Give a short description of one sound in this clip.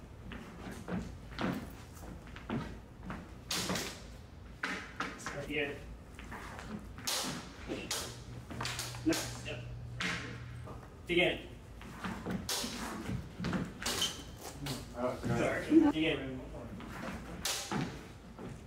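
Footsteps shuffle and thump quickly on a hard floor.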